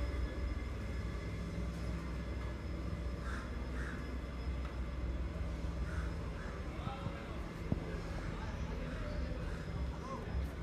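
Low traffic rumble and city bustle fill an outdoor street.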